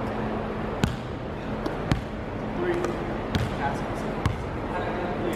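A basketball bounces on a hard court floor in an echoing hall.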